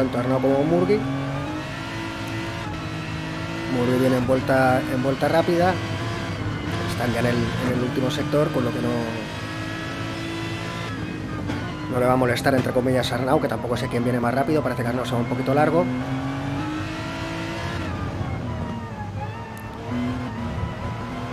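A racing car engine roars, revving up and dropping as the gears change.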